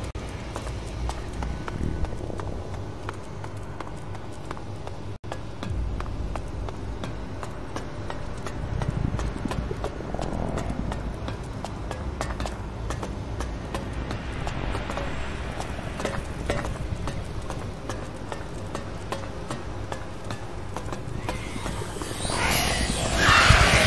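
Footsteps run along a hard floor.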